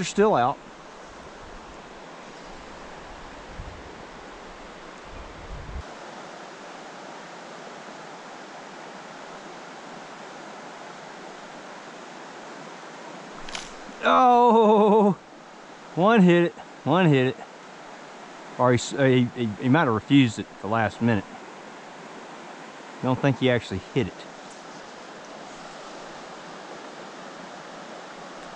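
A creek flows gently nearby.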